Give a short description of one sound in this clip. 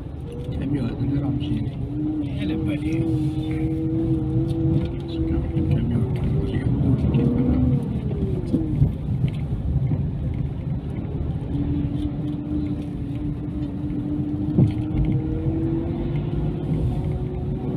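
Tyres rumble on an asphalt road, heard from inside a moving car.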